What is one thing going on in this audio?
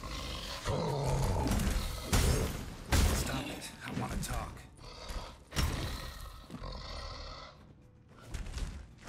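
Heavy blows and crashes of a fight ring out.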